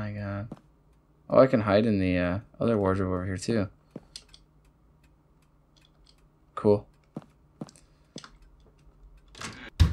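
Footsteps tap slowly on a wooden floor.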